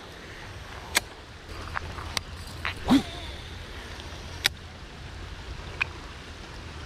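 A fishing reel clicks sharply a few times.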